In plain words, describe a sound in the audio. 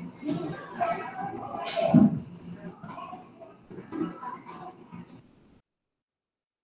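A woman speaks calmly through a mask over an online call.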